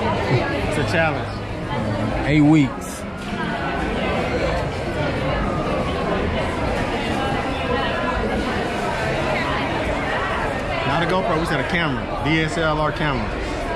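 A young man talks excitedly and laughs close by.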